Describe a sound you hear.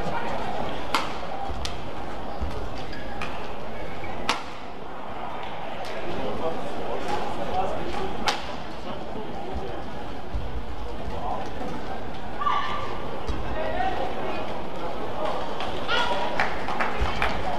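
Rackets smack a shuttlecock back and forth.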